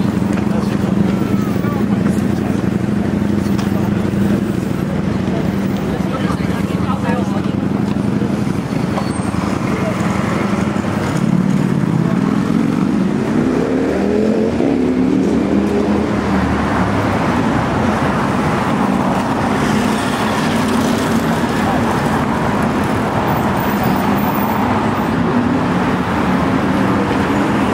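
Steady traffic hums along a city street outdoors.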